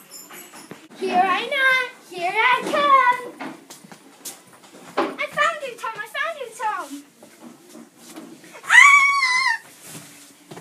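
Children shout and squeal loudly nearby.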